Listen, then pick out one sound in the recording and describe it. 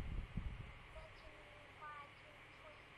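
A young child speaks briefly through an online call.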